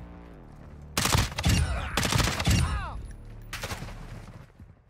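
Loud gunshots ring out in rapid bursts.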